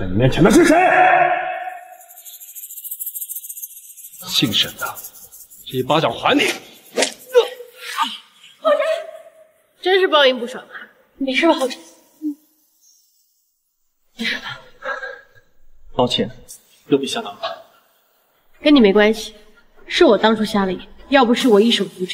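A young man speaks sharply and angrily, close by.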